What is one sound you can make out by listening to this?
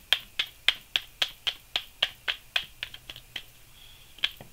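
Playing cards are shuffled in quick, even snaps.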